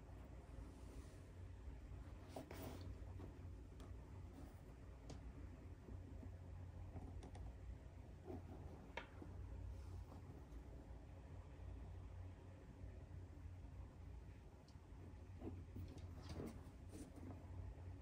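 A leather boot rustles and taps softly as hands turn it over.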